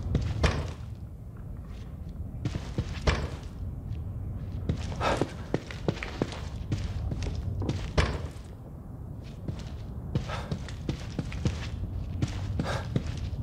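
Footsteps thud on a carpeted floor.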